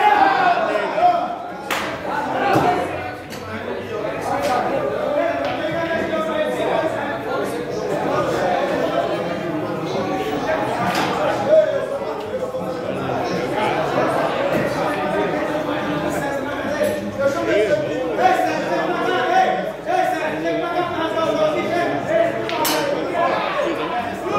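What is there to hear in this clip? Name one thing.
Several men talk loudly with animation nearby.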